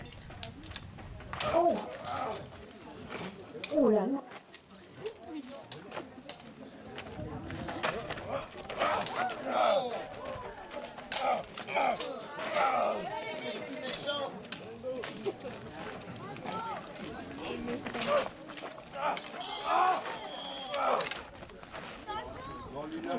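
Steel swords clash and clang sharply.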